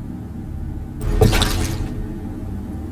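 A metal canister is set down with a thud and rattle on a wooden bench.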